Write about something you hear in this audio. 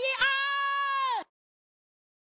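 A cartoon panda sings a long high note in a squeaky voice.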